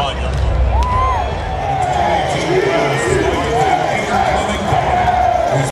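A crowd chatters and cheers.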